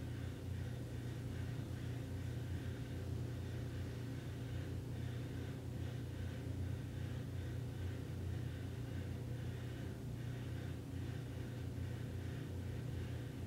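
A man hums a low, steady drone close by.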